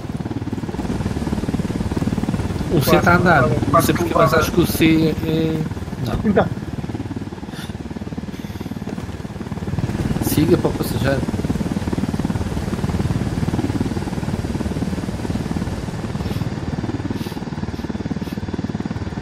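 A helicopter's rotor thumps and whirs steadily.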